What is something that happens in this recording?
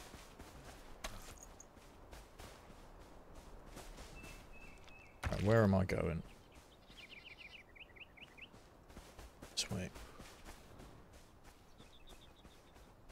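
Footsteps swish quickly through tall grass.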